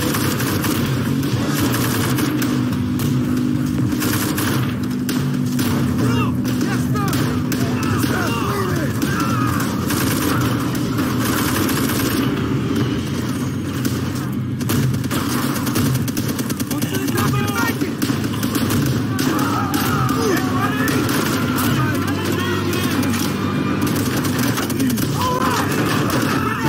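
Rifle shots crack repeatedly amid a loud battle.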